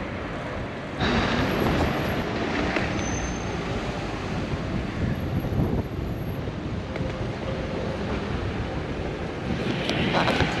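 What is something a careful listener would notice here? Car engines hum in slow traffic close by.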